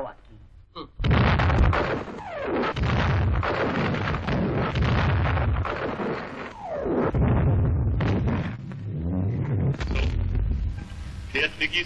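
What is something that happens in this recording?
Explosions roar and rumble loudly nearby.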